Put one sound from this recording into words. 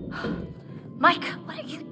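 A young woman calls out loudly.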